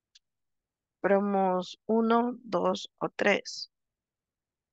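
A young woman speaks briefly over an online call.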